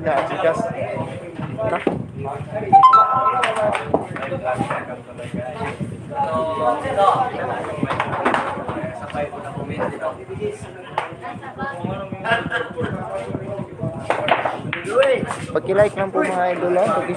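Billiard balls click together as a cue strikes them.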